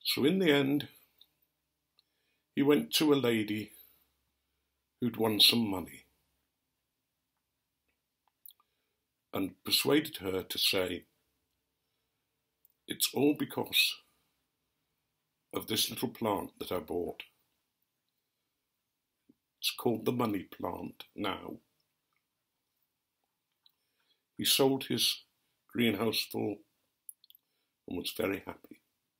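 An elderly man speaks calmly and close up, in short phrases with pauses.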